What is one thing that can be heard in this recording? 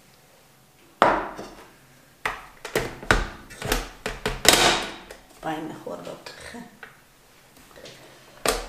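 A metal bowl clinks and knocks as it is fitted into place.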